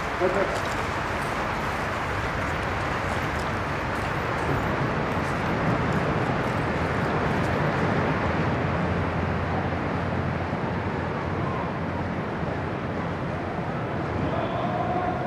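Soldiers' boots shuffle slowly on gravel.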